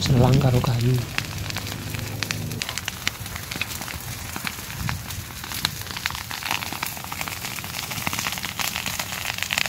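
Dry grass crackles as it burns.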